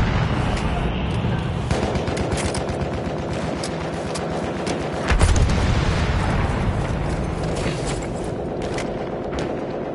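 Gunfire crackles in the distance over a low rumble of battle.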